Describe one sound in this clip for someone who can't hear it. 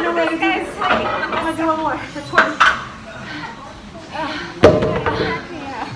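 Metal weight plates clank.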